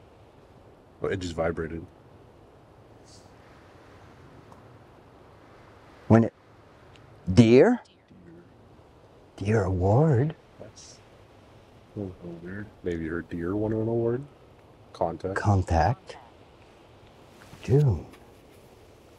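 A young man speaks casually, close by.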